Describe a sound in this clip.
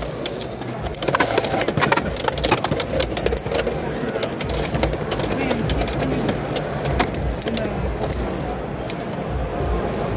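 Spinning tops clatter and click against each other in a plastic arena.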